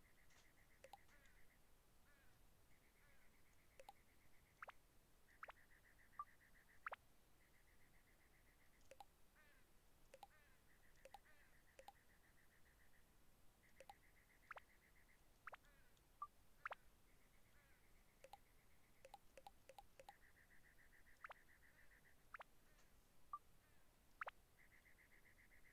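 Short electronic blips and clicks sound as menu items are chosen.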